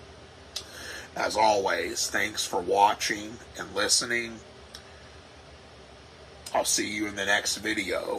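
A man talks calmly close to a microphone.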